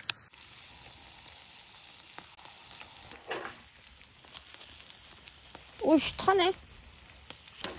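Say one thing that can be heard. Food sizzles over hot charcoal on a grill.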